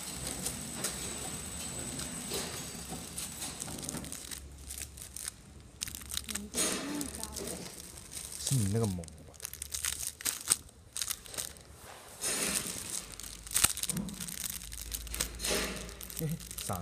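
Plastic wrapping crinkles and rustles as gloved hands handle it.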